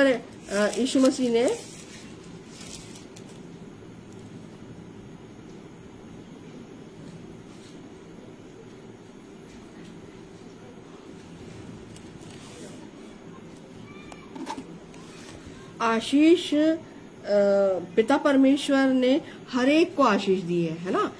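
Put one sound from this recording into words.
A middle-aged woman speaks close to a microphone, calmly reading out.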